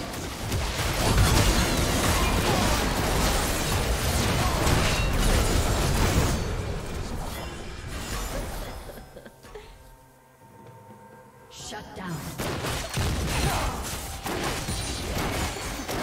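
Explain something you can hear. Game spell effects whoosh, crackle and clash in a busy fight.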